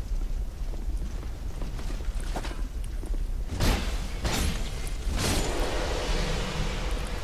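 A deep, steady rumble of fire roars throughout.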